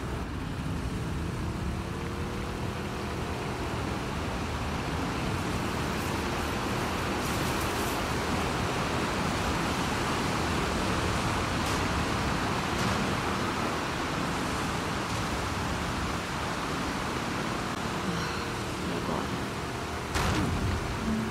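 Water splashes and churns around a boat being pushed through it.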